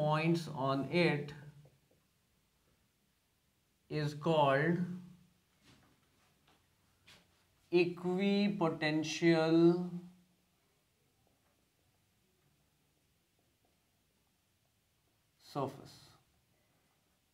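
A middle-aged man speaks calmly, as if teaching, close by.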